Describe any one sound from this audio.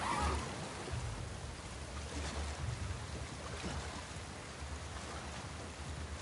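Water sloshes and splashes as someone swims slowly.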